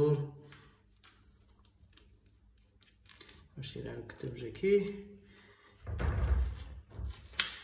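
Small plastic parts click and tap as they are fitted onto a bicycle handlebar.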